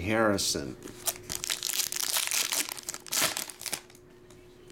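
A foil card pack wrapper crinkles and tears open.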